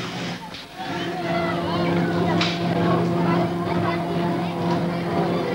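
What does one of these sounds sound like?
A fairground ride's motor hums steadily.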